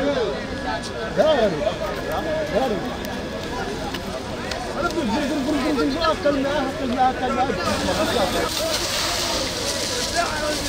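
Several men shout and call out nearby.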